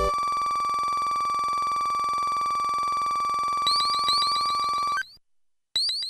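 A steady high electronic beep sounds as a game score tallies up.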